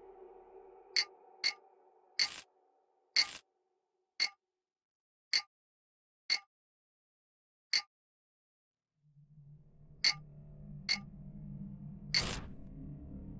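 Stone blocks click sharply into place, one after another.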